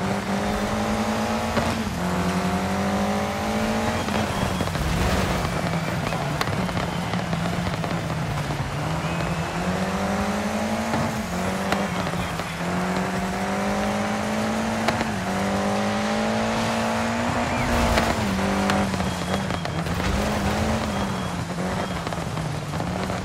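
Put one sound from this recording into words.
A car engine revs high and shifts gears repeatedly.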